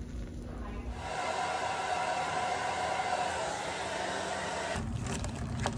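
A hair dryer blows with a steady whoosh.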